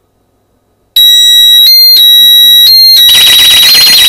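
An alarm beeps loudly in short, piercing bursts.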